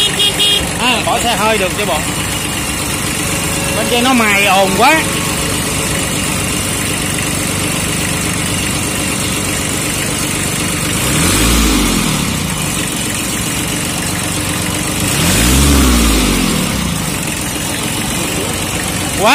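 A small diesel tractor engine idles.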